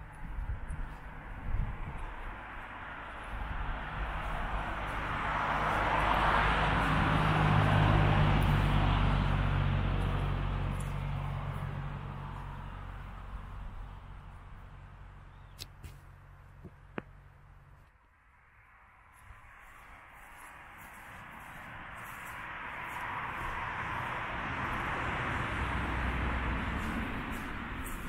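Wind gusts loudly outdoors, rising and falling.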